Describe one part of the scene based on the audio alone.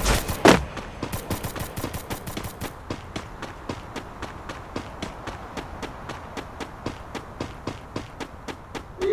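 Footsteps patter quickly and evenly.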